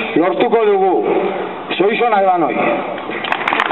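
A man speaks loudly through a microphone and loudspeaker.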